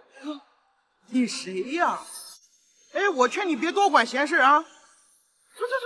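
A man speaks up close in a mocking, dismissive tone.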